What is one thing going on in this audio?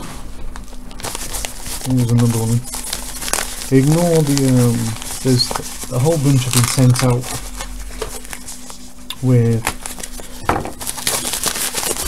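A paper tissue rustles close by.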